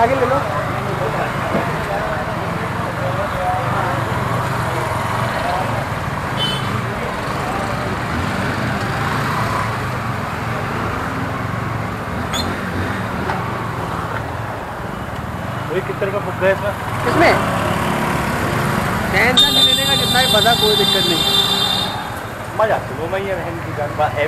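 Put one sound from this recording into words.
Motor scooters and motorcycles rumble past in a busy street.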